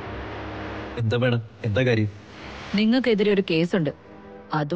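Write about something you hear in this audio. A woman speaks firmly, close by.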